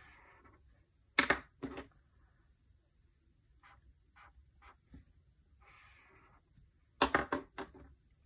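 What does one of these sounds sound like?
A pen cap snaps off with a sharp click.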